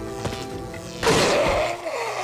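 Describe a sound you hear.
A gunshot rings out sharply.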